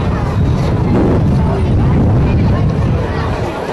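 Men talk among themselves outdoors.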